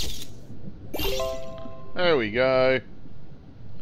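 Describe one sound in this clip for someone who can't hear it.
A bright chime plays a short rising tune.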